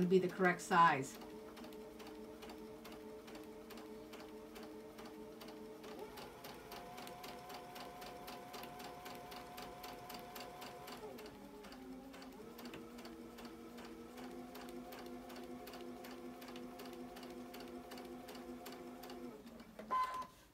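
A sewing machine hums and stitches rapidly and steadily.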